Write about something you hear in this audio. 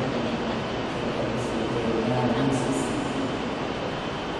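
A young man speaks calmly through a microphone.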